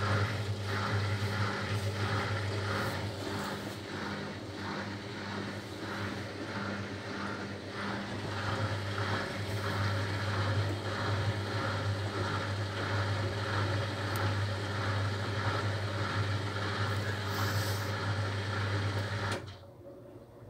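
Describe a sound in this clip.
A washing machine hums loudly as its drum spins.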